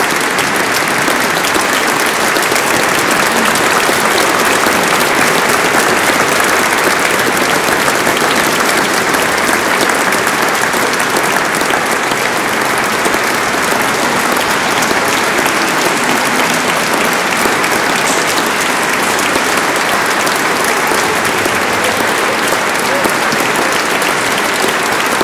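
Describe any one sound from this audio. An audience applauds loudly and steadily in an echoing hall.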